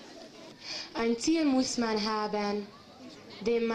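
A young woman speaks loudly into a microphone, heard through a loudspeaker outdoors.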